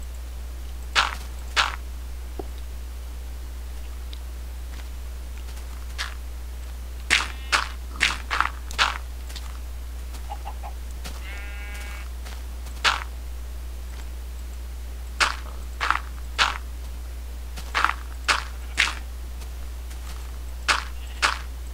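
Dirt and gravel crunch in short, sharp bursts as blocks are dug out.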